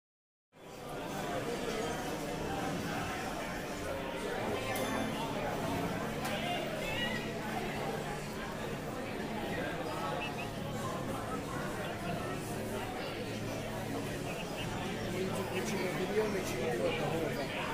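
Upbeat video game music plays from a loudspeaker.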